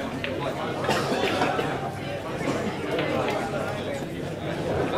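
Pool balls clack against each other and roll.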